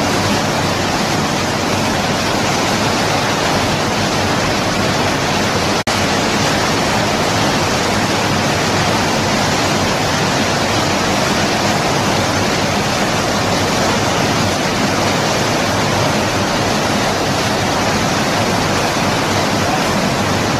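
Muddy floodwater rushes and roars loudly between rocks.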